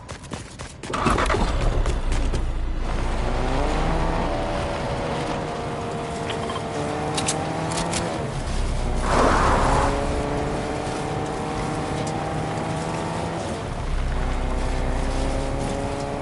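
A car engine starts and revs, rising in pitch as it speeds up.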